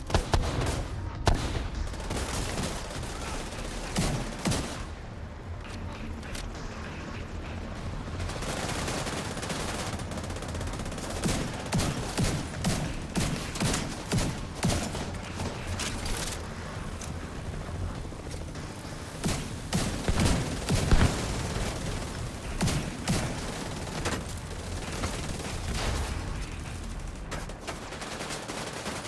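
Gunshots crack in quick bursts, echoing outdoors.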